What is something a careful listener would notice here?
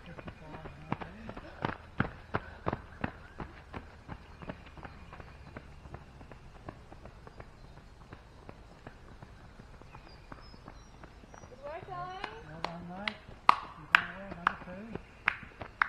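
Runners' footsteps thud and crunch on a dirt track as they pass close by.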